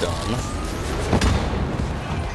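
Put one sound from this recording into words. A loud blast bursts nearby.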